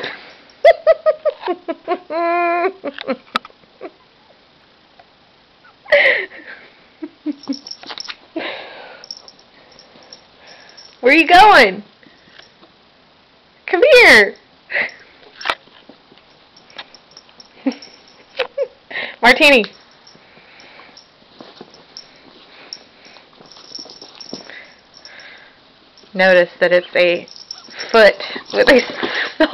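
A small dog barks excitedly nearby.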